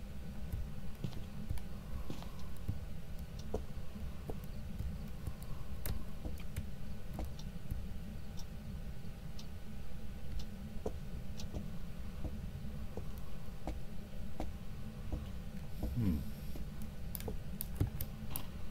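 Footsteps thud slowly on creaking wooden floorboards.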